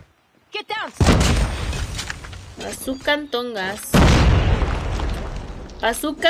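Gunshots boom loudly from a video game.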